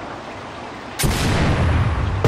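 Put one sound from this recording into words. A rocket launcher fires with a sharp blast.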